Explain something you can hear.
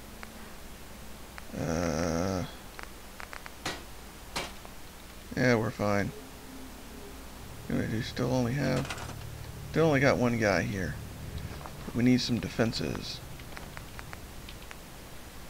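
Short electronic clicks sound as menu items change.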